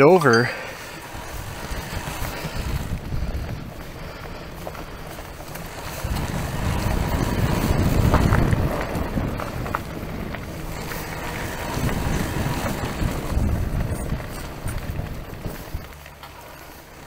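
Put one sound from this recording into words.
Tyres crunch and roll over a gravel path.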